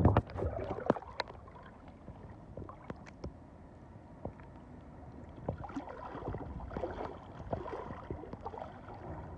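Shallow water laps and trickles gently.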